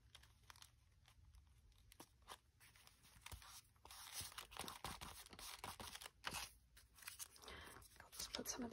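Paper rustles and crinkles as hands press it down.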